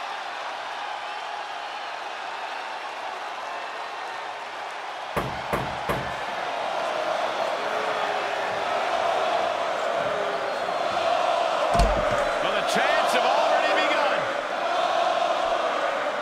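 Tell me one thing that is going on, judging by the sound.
A large arena crowd cheers and roars, echoing through a huge hall.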